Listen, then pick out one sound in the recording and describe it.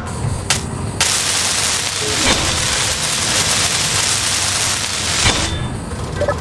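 A welding tool hisses loudly in a steady rush.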